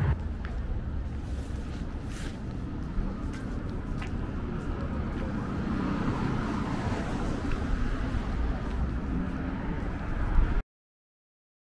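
Traffic rumbles along a nearby city street.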